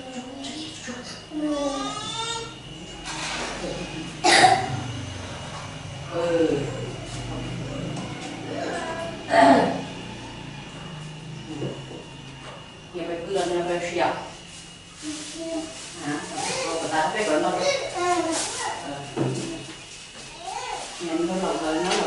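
A young boy speaks in a small voice.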